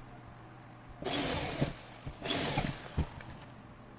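An electric drill whirs briefly into metal.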